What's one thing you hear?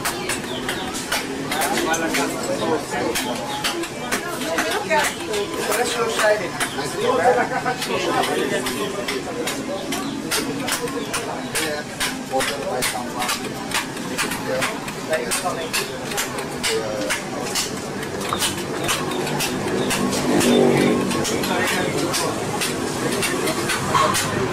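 A mallet taps a chisel into stone in quick, steady blows.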